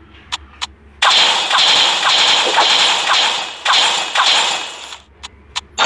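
Game arrows whoosh and strike enemies in quick bursts.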